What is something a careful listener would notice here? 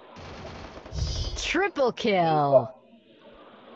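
A short game jingle plays with a falling sweep.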